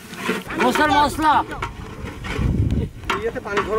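A metal ladle scrapes inside a large pot.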